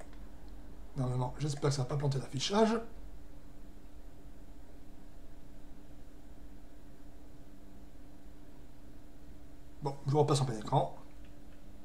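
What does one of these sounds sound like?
A middle-aged man speaks calmly and briefly into a nearby microphone, with pauses.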